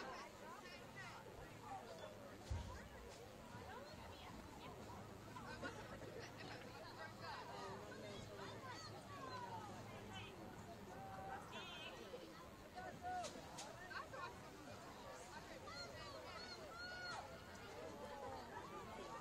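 A crowd of spectators chatters and calls out across an open field.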